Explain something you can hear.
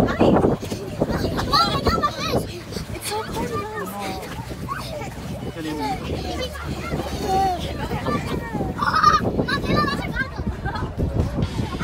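Young children shout and squeal playfully nearby.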